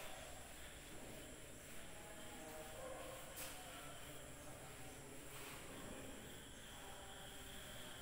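A cloth rubs and wipes across a chalkboard.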